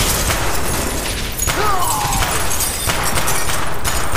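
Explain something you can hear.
Glass shatters and tinkles.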